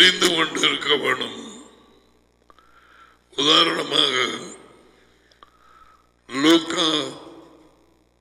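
A man speaks with animation through a headset microphone, in short bursts with pauses.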